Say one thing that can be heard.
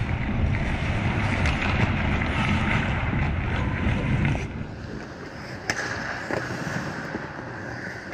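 Skate blades scrape and carve across ice nearby.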